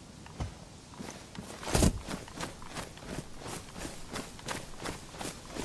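Footsteps swish through tall grass at a steady pace.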